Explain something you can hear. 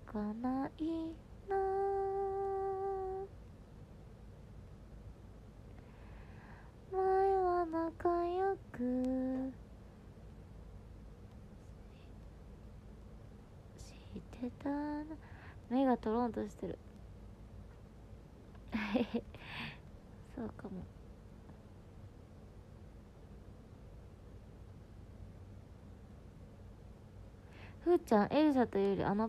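A young woman speaks softly and tearfully, close to a phone microphone.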